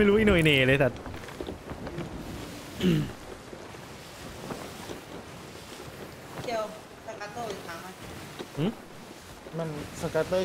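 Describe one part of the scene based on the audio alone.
Waves wash against a wooden ship at sea.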